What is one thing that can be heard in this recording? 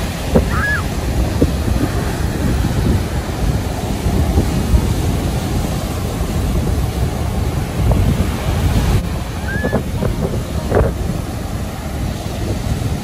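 Waves break and wash onto the shore outdoors in wind.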